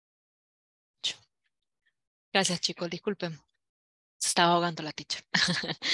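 A woman speaks calmly and clearly through an online call.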